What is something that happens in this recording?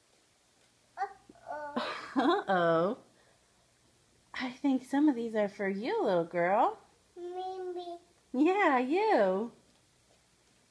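A toddler girl babbles and sings loudly nearby in high, wavering bursts.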